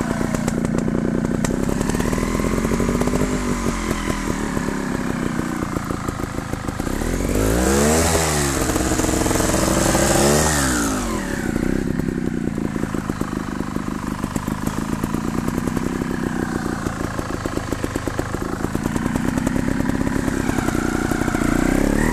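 Knobby tyres crunch over grass and rocks.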